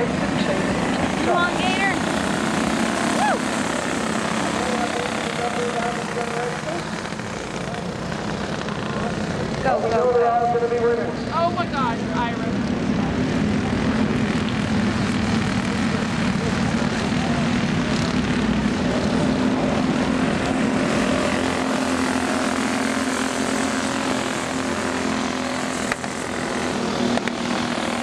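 Kart engines drone and whine steadily outdoors.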